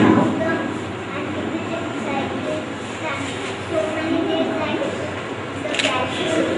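Adults murmur and chat in the background.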